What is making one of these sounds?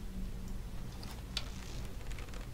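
A bowstring creaks as a bow is drawn.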